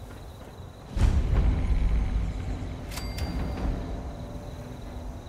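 A low musical swell sounds as a new place is reached.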